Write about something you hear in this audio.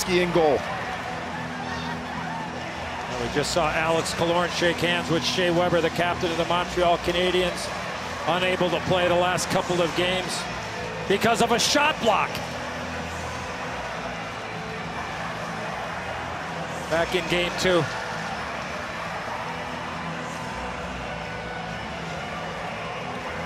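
A large crowd cheers and applauds steadily in a big echoing arena.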